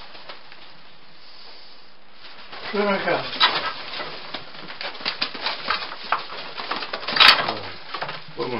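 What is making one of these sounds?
Pigeon wings flap and clatter close by.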